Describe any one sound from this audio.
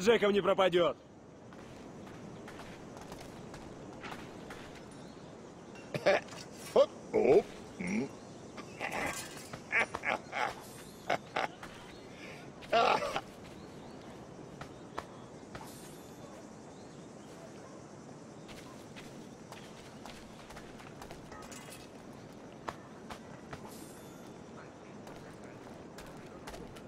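Footsteps crunch on dirt ground.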